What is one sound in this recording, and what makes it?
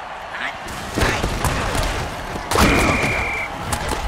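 Armoured players crash together in a heavy tackle.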